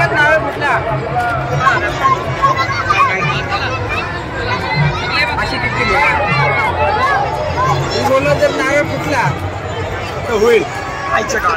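A large outdoor crowd chatters with many overlapping voices of men and women.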